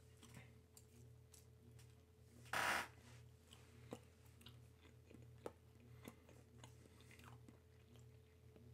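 A man chews food close to a microphone.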